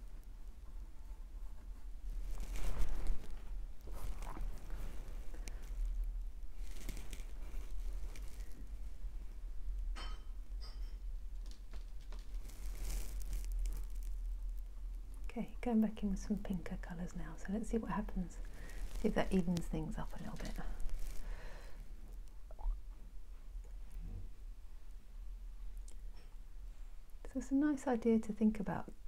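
A paintbrush dabs and strokes softly on canvas.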